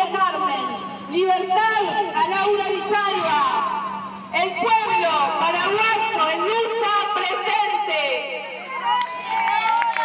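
A crowd of women sings together outdoors.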